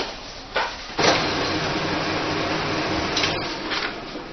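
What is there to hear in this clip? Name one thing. A photocopier hums and whirs as it copies.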